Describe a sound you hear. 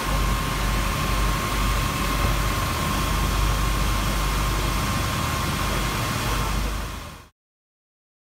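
Wind blows outdoors across the microphone.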